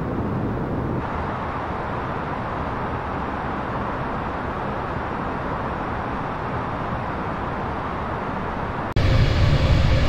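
A low steady hum fills an airliner cockpit.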